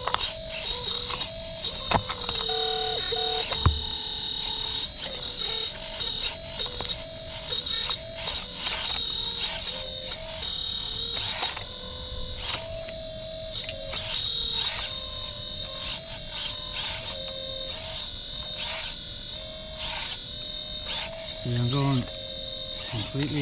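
Small electric motors whine and shift in pitch as a toy excavator moves its arm.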